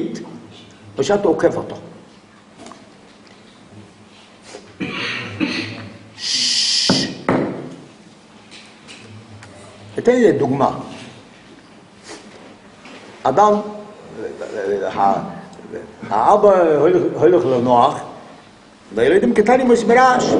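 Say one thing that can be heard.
An elderly man speaks with animation, close by, in bursts with pauses.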